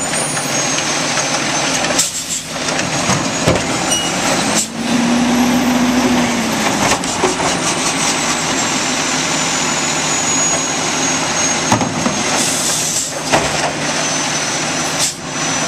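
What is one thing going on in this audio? A garbage truck engine idles loudly close by.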